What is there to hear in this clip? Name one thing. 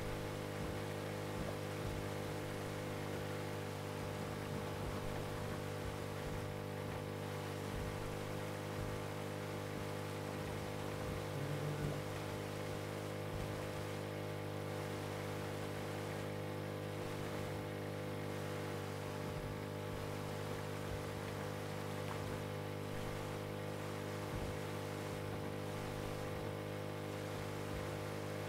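A boat motor drones steadily.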